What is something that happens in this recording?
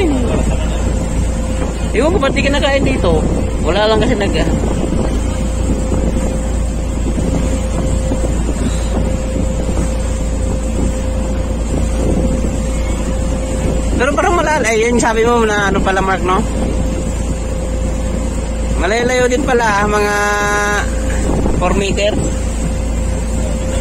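A boat's motor hums steadily.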